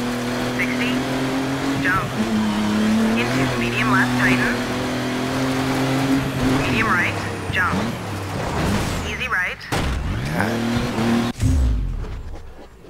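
Tyres skid and crunch on gravel.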